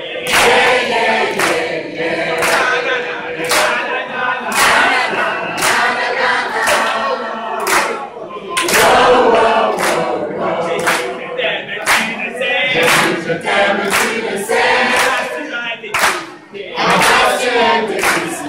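A crowd of people claps along in a steady rhythm.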